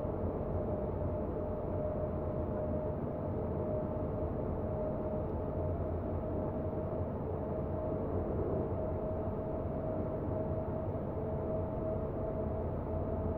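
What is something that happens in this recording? A train's motor hums steadily as it runs along the track.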